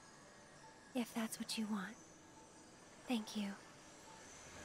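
A young woman speaks softly and tearfully into a nearby microphone.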